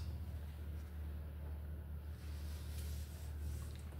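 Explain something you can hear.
Paper rustles as a sheet is turned.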